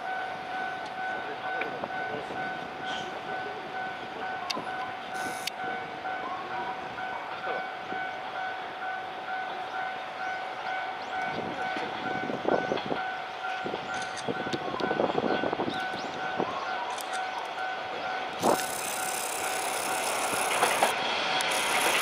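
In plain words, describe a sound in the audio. A railway crossing bell dings steadily.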